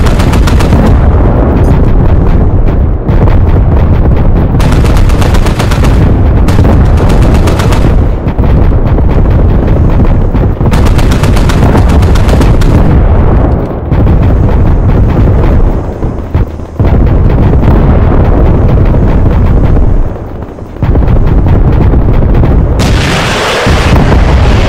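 Explosions boom and rumble heavily, one after another.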